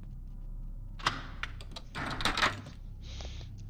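A heavy wooden door rattles as someone tries to open it.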